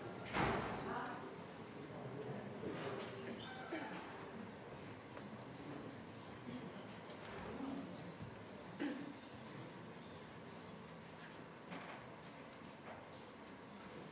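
A woman speaks calmly into a microphone, heard over loudspeakers in a large echoing hall.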